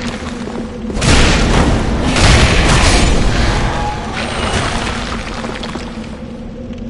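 A loud magical blast roars and crackles.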